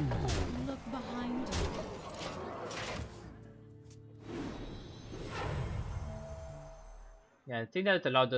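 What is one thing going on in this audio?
Magical game sound effects whoosh and shimmer.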